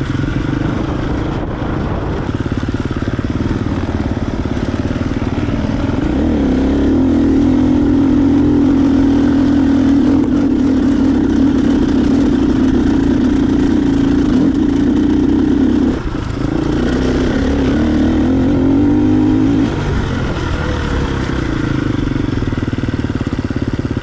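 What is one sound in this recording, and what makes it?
A dirt bike engine revs hard close by, climbing and straining uphill.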